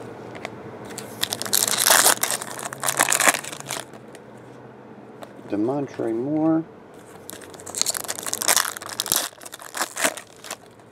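A foil wrapper crinkles and tears as it is pulled open.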